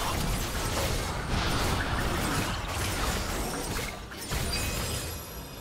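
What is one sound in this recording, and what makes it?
Video game spells burst and crackle in a busy fight.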